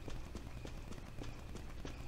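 Boots tread on a hard floor.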